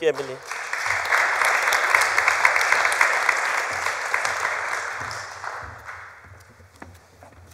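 An audience applauds in a large hall, and the applause fades away.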